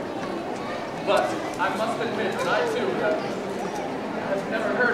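A young man speaks in a raised, acting voice in a large echoing hall.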